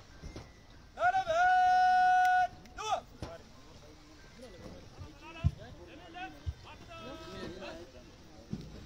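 A man shouts long drawn-out commands outdoors.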